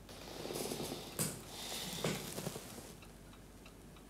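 A man breathes out heavily close by.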